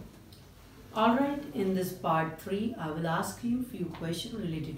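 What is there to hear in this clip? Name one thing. A woman speaks calmly and clearly nearby.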